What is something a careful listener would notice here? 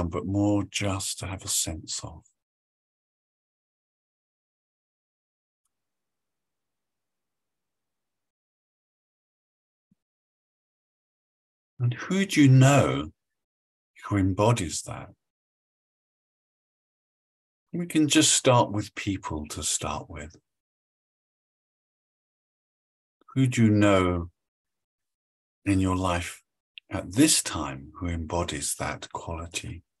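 A middle-aged man speaks calmly over an online call, pausing between phrases.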